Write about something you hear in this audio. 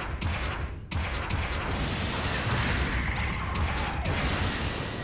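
Jet thrusters roar in a steady rush as a giant robot boosts forward.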